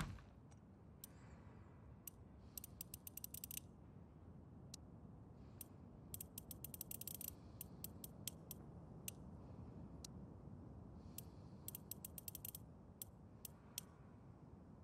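A combination dial clicks quickly as it turns.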